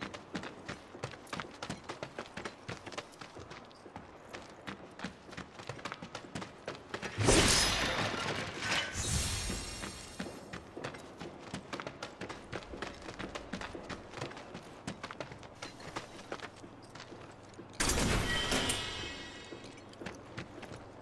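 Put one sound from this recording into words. Footsteps crunch steadily on gritty ground.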